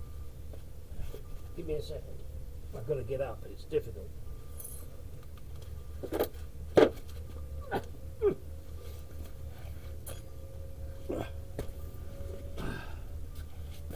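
Metal tools clink and clatter close by.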